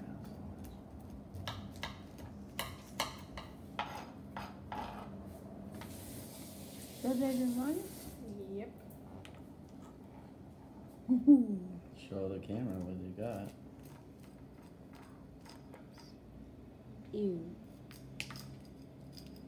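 A knife taps and scrapes on a cutting board.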